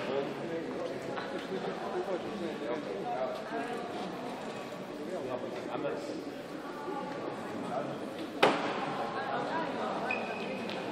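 A small crowd murmurs and chatters in a large echoing hall.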